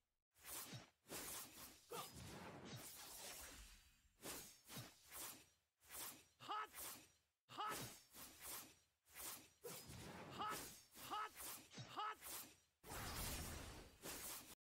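Game combat effects whoosh and clash in quick bursts.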